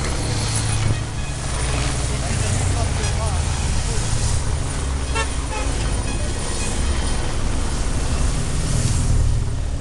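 Motorcycle engines rumble as they ride past.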